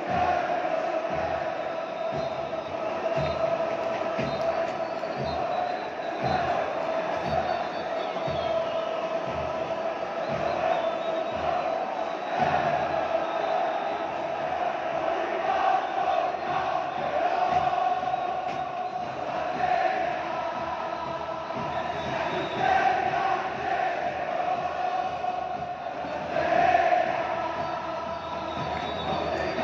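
A huge stadium crowd chants and sings loudly in unison.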